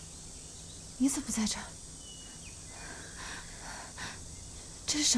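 A young woman speaks quietly nearby.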